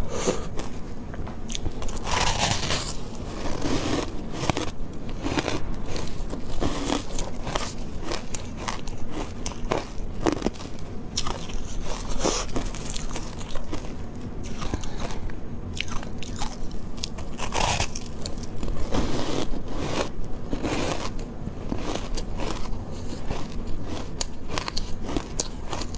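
Crushed ice crackles and crumbles as gloved fingers squeeze it.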